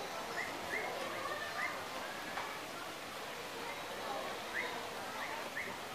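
Hooves tap on rock as goats walk.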